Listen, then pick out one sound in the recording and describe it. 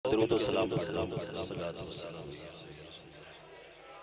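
An older man speaks forcefully into a microphone, his voice echoing through loudspeakers.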